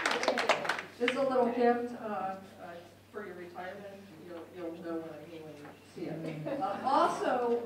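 A mixed choir sings in harmony.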